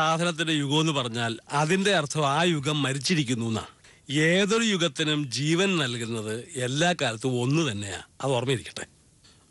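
An older man speaks with animation, close by.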